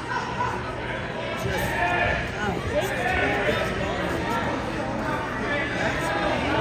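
A crowd of spectators chatter and call out in a large echoing gym.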